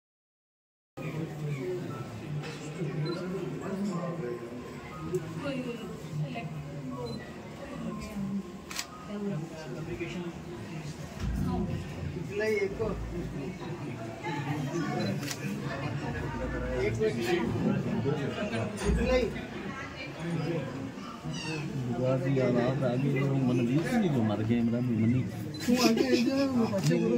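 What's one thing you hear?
A crowd of men and women murmur and chatter close by.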